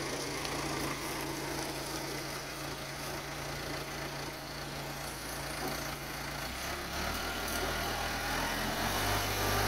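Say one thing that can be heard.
A wooden shed scrapes and drags across gravel.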